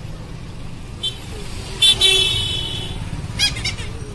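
A motorbike engine hums as it passes close by.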